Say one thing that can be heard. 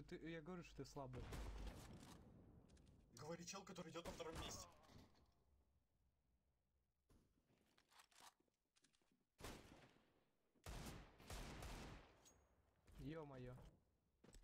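Sharp gunshots crack in quick bursts.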